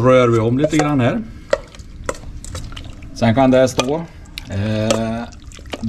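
Raw meat squelches as hands toss it in a metal bowl.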